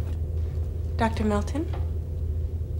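A young woman says a few words quietly, close by.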